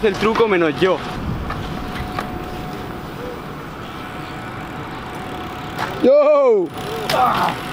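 Small hard wheels roll over concrete.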